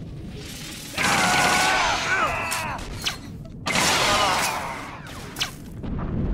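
Blaster guns fire in rapid bursts of zapping shots.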